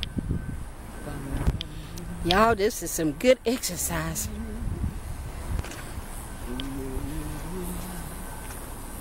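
A woman speaks animatedly close to the microphone, her voice rising high.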